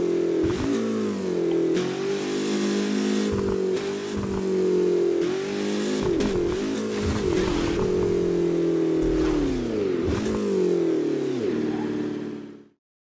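A racing car engine roars loudly, revving up and shifting gears.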